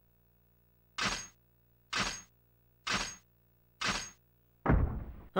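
A cannon fires short blasts at an even pace.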